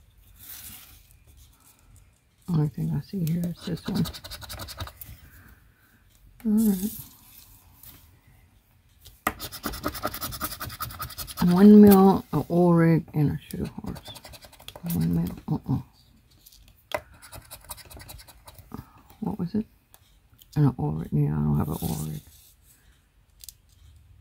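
Paper cards rustle as they are handled.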